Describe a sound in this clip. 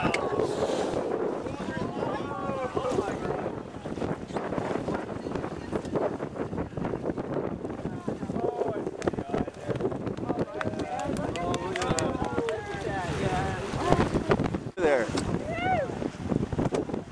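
Water splashes and laps against a small boat.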